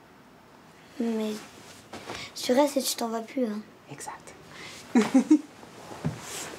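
A young girl asks questions in a soft, close voice.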